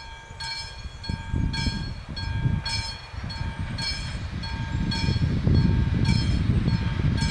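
A train approaches from afar with a low, growing rumble.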